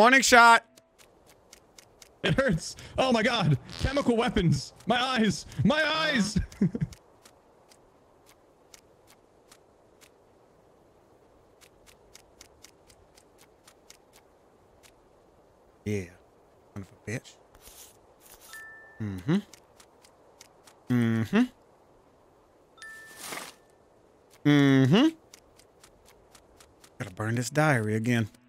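A man talks with animation close to a microphone, pausing now and then.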